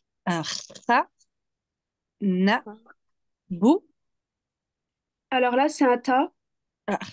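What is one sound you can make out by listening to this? A young woman speaks slowly and clearly over an online call, pronouncing words one by one.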